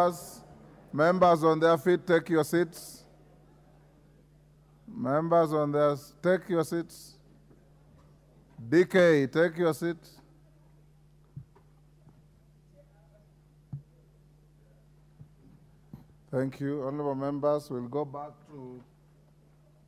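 A man speaks calmly through a microphone, in short phrases with pauses.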